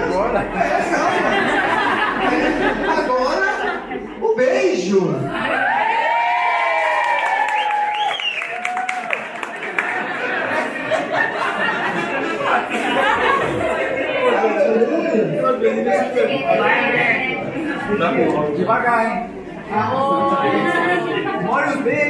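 A middle-aged man speaks with animation through a microphone, amplified by loudspeakers in an echoing hall.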